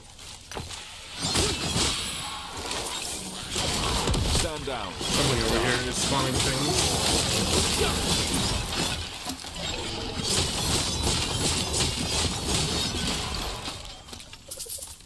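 Loud game combat effects crash and rumble.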